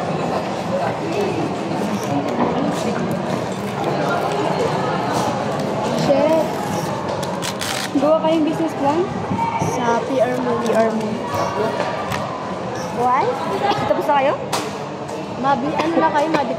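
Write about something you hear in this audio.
Many voices murmur in the background.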